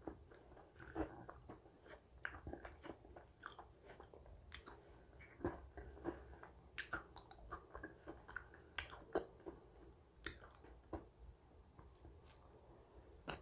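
A woman chews and slurps close to a microphone.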